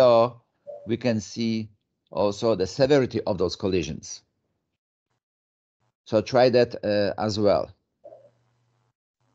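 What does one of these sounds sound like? An adult speaks calmly over an online call.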